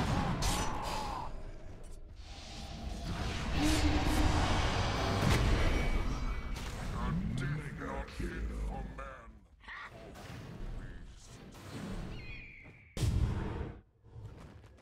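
Magic blasts and crackles burst out in a noisy fight.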